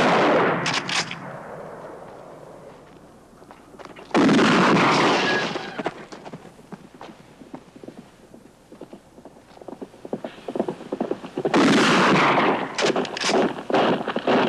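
Gunshots crack loudly and echo.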